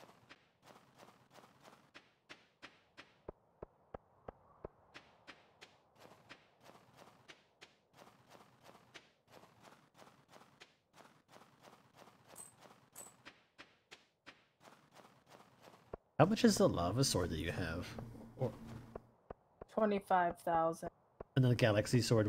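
Footsteps tap along at a steady walking pace.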